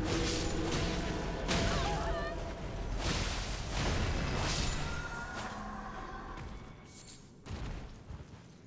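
Swords slash and strike with sharp, heavy impacts.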